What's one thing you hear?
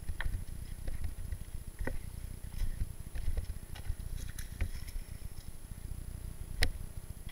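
A bicycle frame clatters and knocks over bumps.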